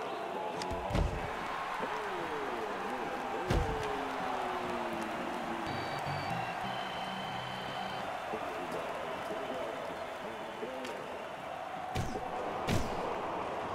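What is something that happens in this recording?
A hockey stick sharply strikes a puck.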